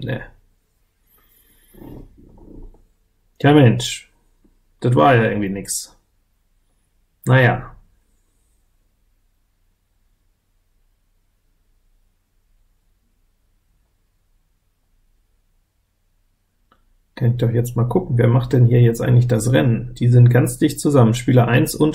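A man speaks calmly and close to a microphone, in short bursts and then at length.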